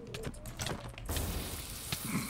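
Fireworks burst and crackle.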